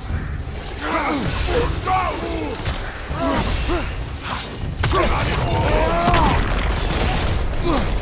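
Fiery blasts whoosh and crackle.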